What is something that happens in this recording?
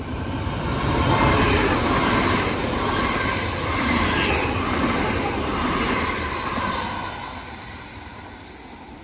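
A passenger train rushes past close by, with a loud roar that fades as it leaves.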